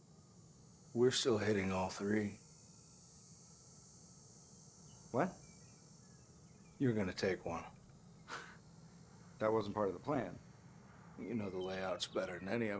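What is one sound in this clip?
A middle-aged man speaks calmly and closely.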